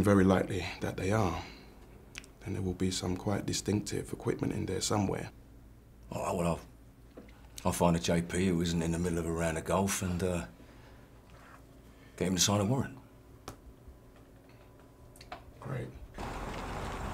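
A second man replies calmly nearby.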